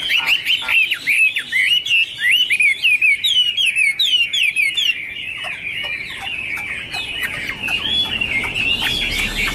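A songbird sings a rapid, varied song of sweet whistles close by.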